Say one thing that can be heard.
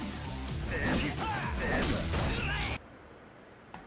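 Punches and scuffling ring out in a brief brawl.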